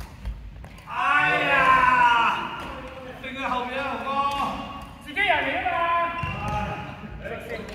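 Middle-aged men shout and call out with animation.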